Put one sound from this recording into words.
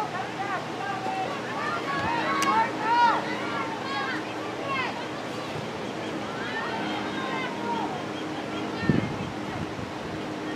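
Young players call out to each other across an open field.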